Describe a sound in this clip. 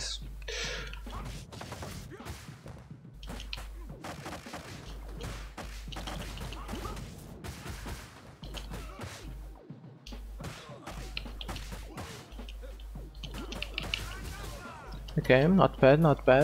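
Punches and kicks thud and smack in quick succession.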